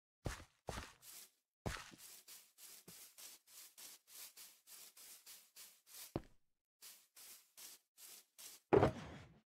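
Footsteps tap lightly and steadily on the ground.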